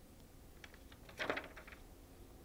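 A magazine page turns with a soft papery rustle.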